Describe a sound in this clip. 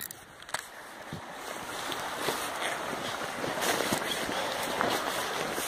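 A river flows and ripples nearby.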